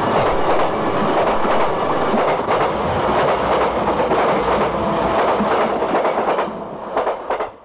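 A train rumbles past close by with a loud roar.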